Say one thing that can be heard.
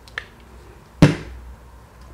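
A plastic bottle knocks against a hard tabletop.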